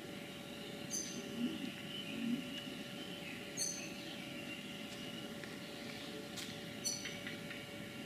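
A small bird calls with sharp high notes.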